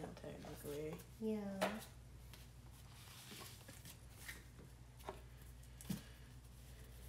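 Cards tap and slide on a table.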